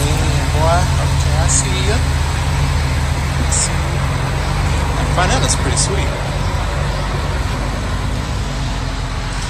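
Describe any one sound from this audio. A car drives off slowly, its engine burbling.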